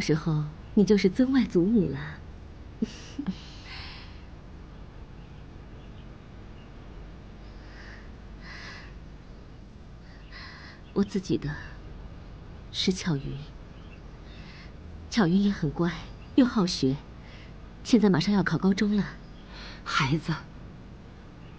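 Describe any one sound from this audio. A young woman speaks warmly and with animation, close by.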